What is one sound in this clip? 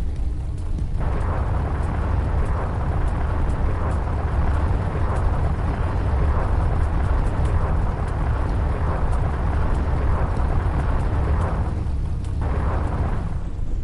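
A spaceship engine roars louder with a rushing hiss.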